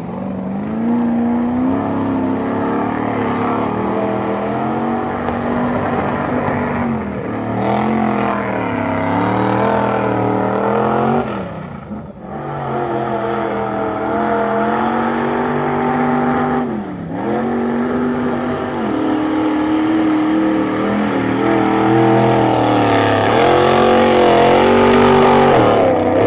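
Thick mud splashes and sprays under spinning tyres.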